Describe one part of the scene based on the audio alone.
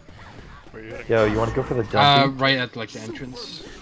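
Zombies growl and shriek nearby.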